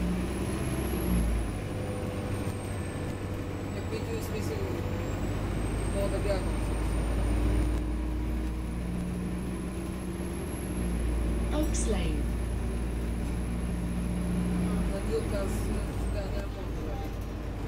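A bus engine rumbles steadily, with the motor's whine rising and falling.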